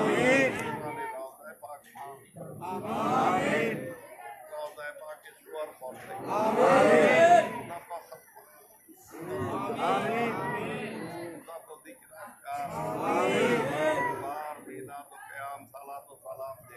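A crowd of men murmurs prayers along.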